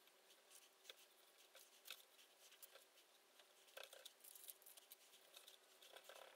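Foil crinkles and rustles.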